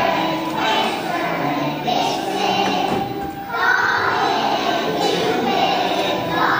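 A large choir of young children sings together in an echoing hall.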